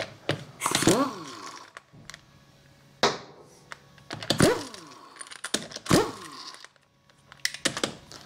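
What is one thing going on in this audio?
An impact wrench rattles in loud, short bursts.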